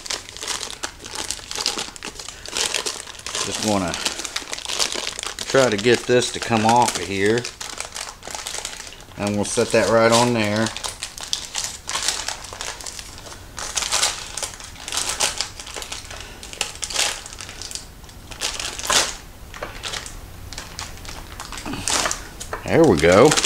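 Parchment paper crinkles and rustles as it is handled.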